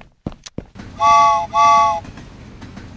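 A train horn toots twice.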